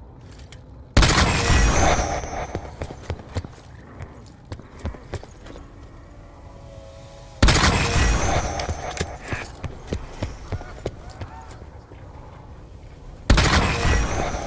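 A gun fires loud bursts of shots.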